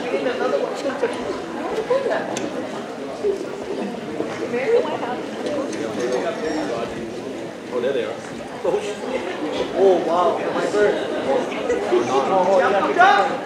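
A crowd of people chatters and calls out in a large hall.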